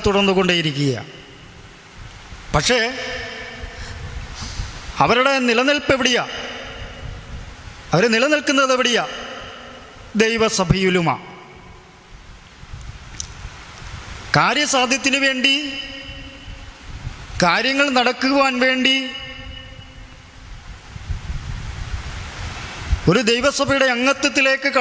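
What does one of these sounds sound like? A man speaks calmly into a microphone in short bursts with pauses.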